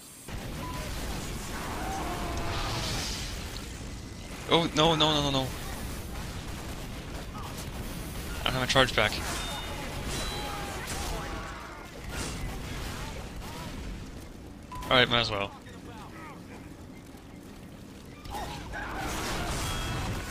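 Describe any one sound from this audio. Guns fire and explosions boom in a video game battle.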